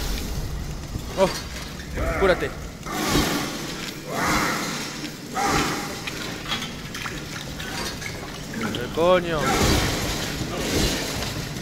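A chainsaw engine roars and revs.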